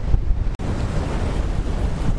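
Waves break and wash up on a beach.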